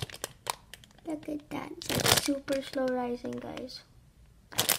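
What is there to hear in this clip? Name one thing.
A young girl speaks up close with a lively, sing-song voice.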